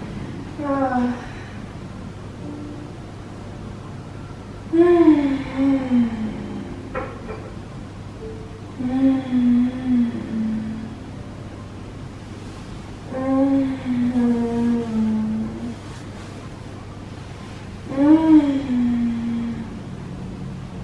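A young woman moans in pain in long, falling groans close by.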